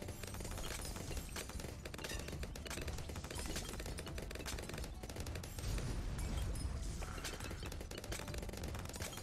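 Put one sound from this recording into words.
Game balloons pop rapidly and without a break.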